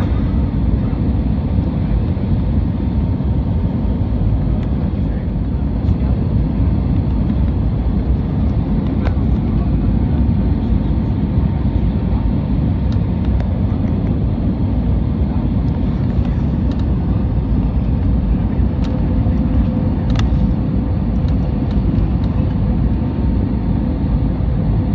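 Jet engines roar steadily inside an airliner cabin.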